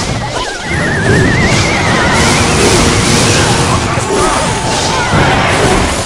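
Cartoonish battle sound effects clash and thud.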